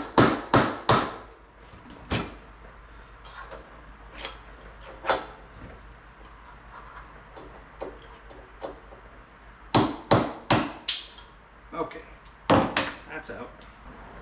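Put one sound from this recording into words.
Metal tools clank and knock against a wheel rim.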